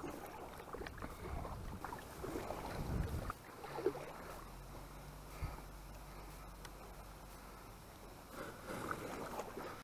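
A paddle dips and splashes softly in the water.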